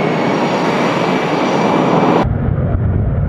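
A jet engine roars loudly with a high whine.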